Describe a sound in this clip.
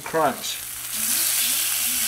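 Metal tongs scrape and clink against a pan.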